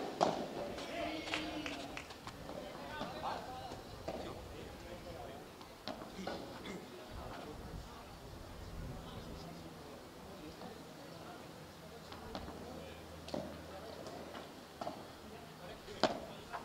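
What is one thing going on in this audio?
Padel rackets hit a ball outdoors.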